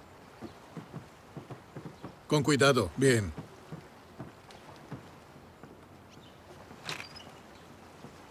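Footsteps climb wooden steps and cross a wooden porch.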